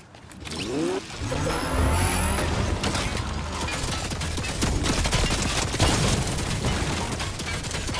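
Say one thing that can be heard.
A car engine revs and roars as a vehicle drives.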